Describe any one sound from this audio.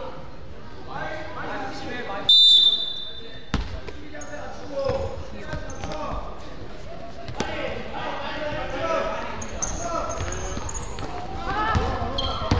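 Boys shout and chatter nearby in a large echoing hall.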